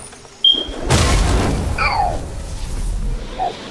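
A loud rushing whoosh of energy bursts out.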